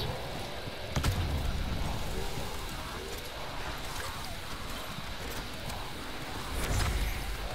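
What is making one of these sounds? Fiery explosions burst and crackle.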